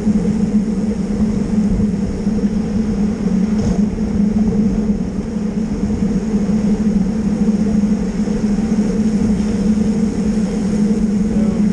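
Wind rushes loudly across a microphone outdoors.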